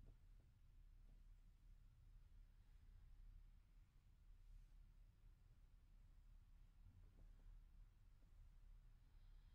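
A body shifts and rustles softly on a mattress.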